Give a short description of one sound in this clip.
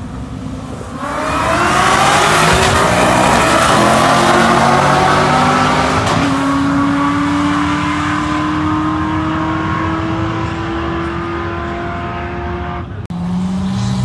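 Race car engines roar loudly down a drag strip, echoing off the grandstands.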